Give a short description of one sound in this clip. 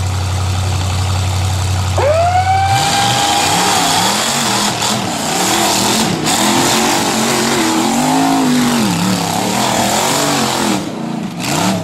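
An off-road buggy engine revs hard as it climbs over rocks.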